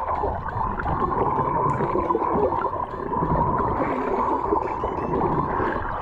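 Air bubbles gurgle as they rise through water.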